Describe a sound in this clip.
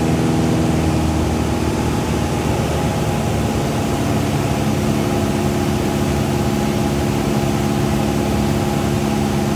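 A small plane's propeller engine drones loudly and steadily, with a shift in pitch partway through.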